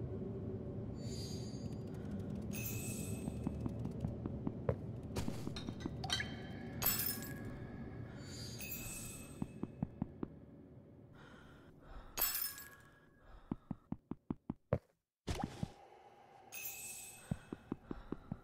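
Bright magical chimes ring out now and then.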